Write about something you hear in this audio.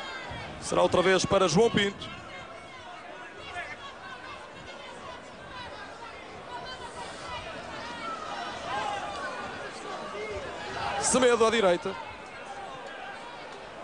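A stadium crowd murmurs and cheers in the distance, outdoors.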